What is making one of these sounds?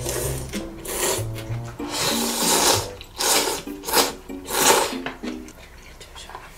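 Two people slurp noodles loudly.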